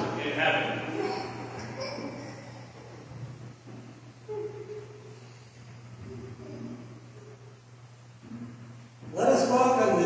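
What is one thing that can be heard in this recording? A man speaks quietly in a large echoing hall.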